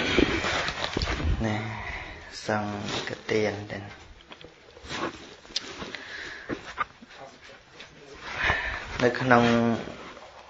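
A man chants in a calm, drawn-out voice close to a microphone.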